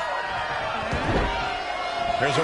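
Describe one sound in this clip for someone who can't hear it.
A body slams heavily onto a ring mat.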